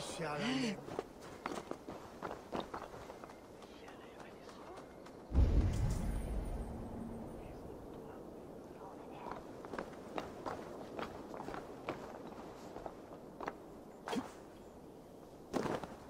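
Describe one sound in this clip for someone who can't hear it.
Footsteps clatter on roof tiles.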